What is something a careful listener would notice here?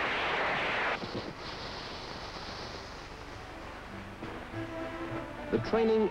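A welding torch hisses and crackles.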